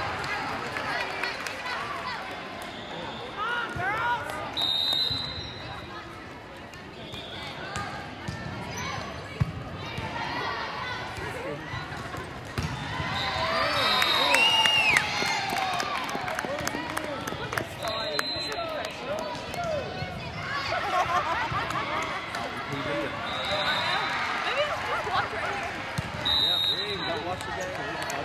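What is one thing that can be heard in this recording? Spectators chatter and cheer in a large echoing hall.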